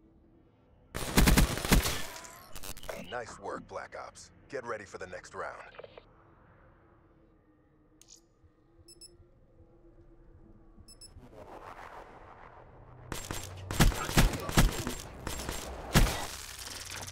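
Loud bursts of rapid gunfire crack out, close by.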